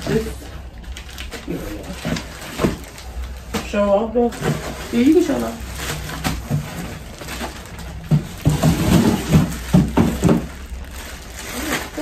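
Plastic packaging crinkles and rustles as it is handled.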